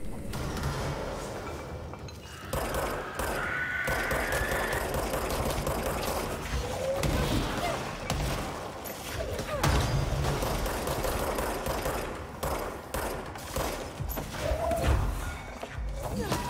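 A pistol fires in quick bursts of gunshots.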